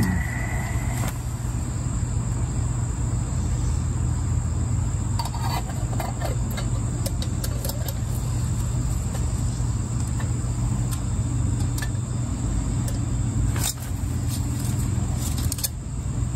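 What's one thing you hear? Small metal pieces clink and rattle as they are handled close by.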